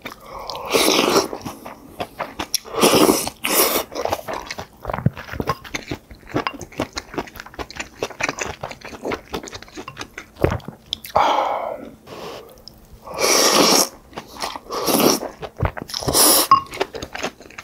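A man slurps noodles loudly, close to a microphone.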